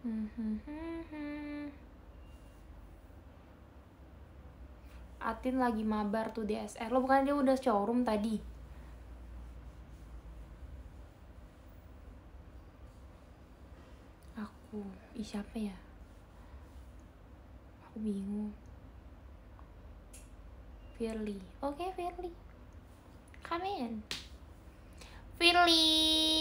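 A young woman speaks close to the microphone in short, casual bursts with pauses between them.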